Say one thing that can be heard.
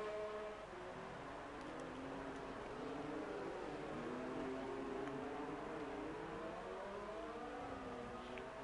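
Racing car engines whine at high revs, shifting pitch up and down as the cars pass.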